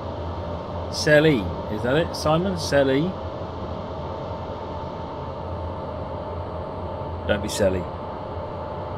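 A middle-aged man speaks casually into a microphone.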